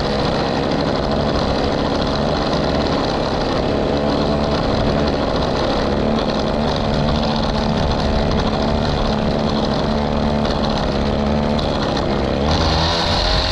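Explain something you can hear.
A string trimmer line whips through grass.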